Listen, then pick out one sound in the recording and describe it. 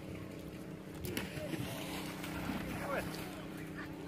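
A runner splashes through shallow muddy water.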